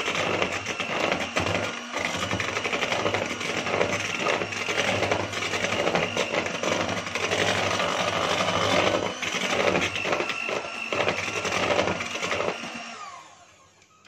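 An electric hand mixer whirs, beating batter in a plastic bowl.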